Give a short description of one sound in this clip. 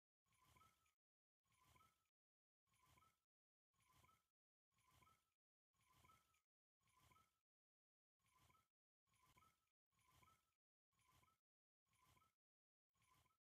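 A fishing reel whirs faintly in short repeated bursts as line is wound in.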